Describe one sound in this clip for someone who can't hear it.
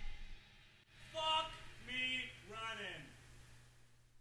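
A man speaks in a surprised tone.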